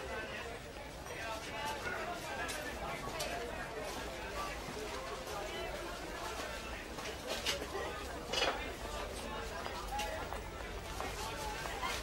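Many people chatter and call out all around.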